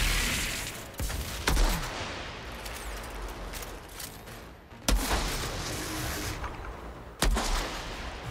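Gunshots fire in sharp single bursts.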